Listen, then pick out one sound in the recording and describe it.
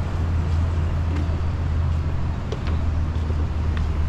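Footsteps thud softly on wooden boards.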